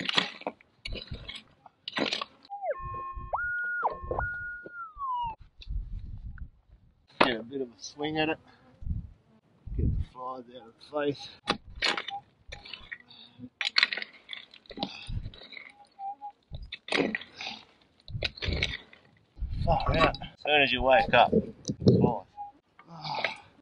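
A man digs into stony ground with a pick, with sharp scrapes and knocks.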